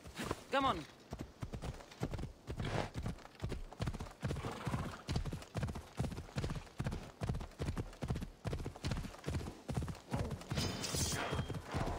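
Horse hooves gallop rhythmically on a dirt path.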